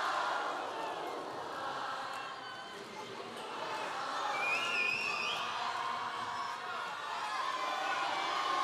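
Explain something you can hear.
A large audience cheers and murmurs.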